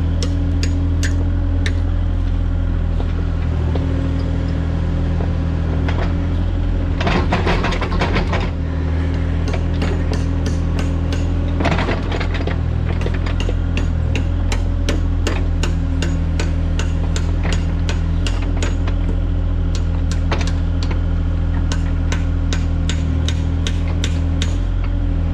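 An excavator's hydraulics whine and clank as the arm moves.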